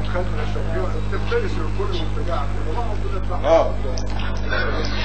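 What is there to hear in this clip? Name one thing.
A man speaks continuously into a microphone, heard through a loudspeaker.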